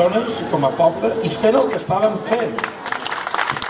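A crowd of people sings together outdoors.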